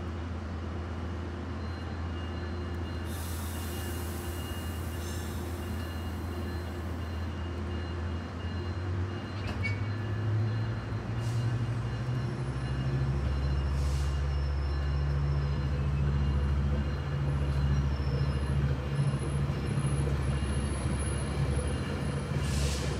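A diesel train engine idles with a deep steady rumble.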